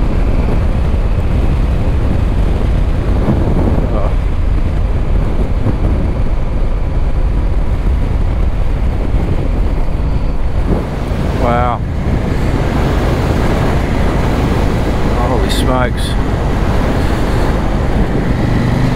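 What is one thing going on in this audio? Tyres crunch steadily over a gravel road.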